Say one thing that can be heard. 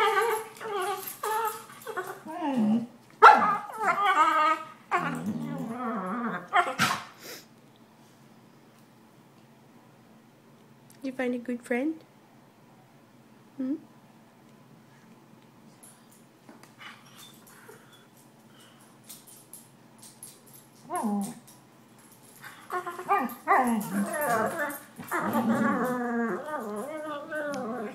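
Two dogs growl and grumble playfully up close.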